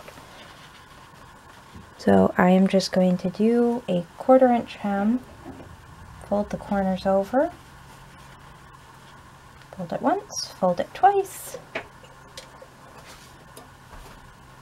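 Paper rustles softly under hands smoothing it flat.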